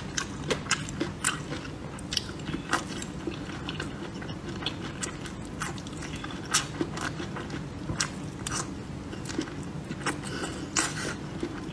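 A woman slurps food noisily up close.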